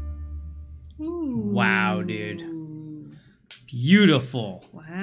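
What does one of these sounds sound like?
A woman sings in a drawn-out, melodic voice, close to a microphone.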